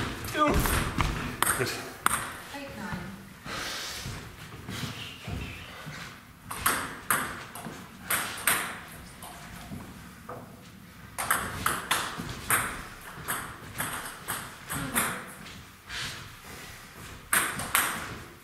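A table tennis ball clicks quickly back and forth off paddles and a table.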